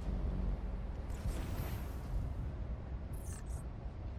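Air whooshes past in a rush.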